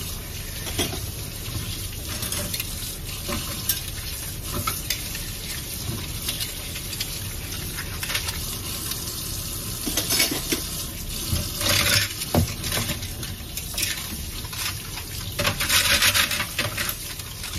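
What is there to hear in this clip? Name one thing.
Dishes clink and clatter in a sink.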